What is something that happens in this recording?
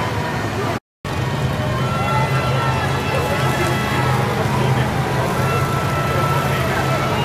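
Off-road vehicle engines rumble and idle as they roll past.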